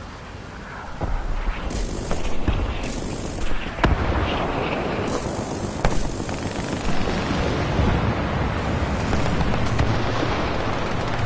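Heavy cannon fire rattles in rapid bursts.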